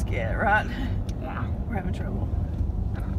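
A woman speaks in a high, mocking voice close by, muffled by a mask.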